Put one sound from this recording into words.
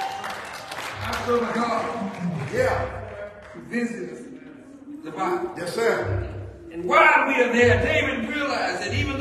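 A man preaches with passion into a microphone in an echoing hall.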